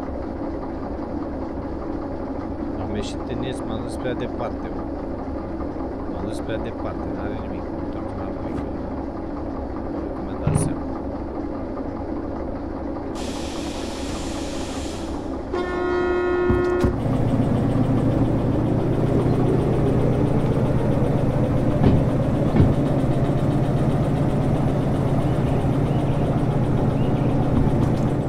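A diesel locomotive engine drones steadily and grows louder partway through.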